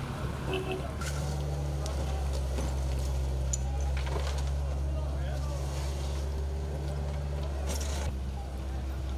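A bulldozer engine rumbles steadily nearby.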